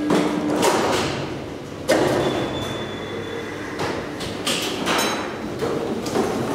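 A large machine rattles and clatters loudly with heavy rolling wheels.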